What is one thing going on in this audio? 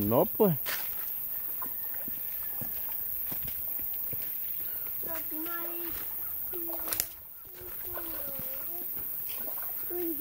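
A child's feet splash softly through shallow water.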